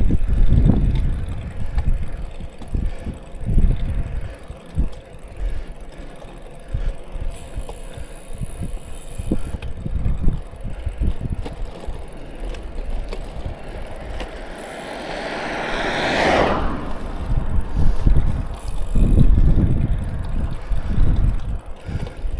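Wind buffets and rumbles against the microphone.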